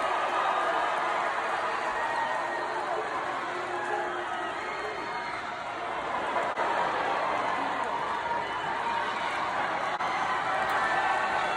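A large crowd cheers and shouts loudly in a big echoing arena.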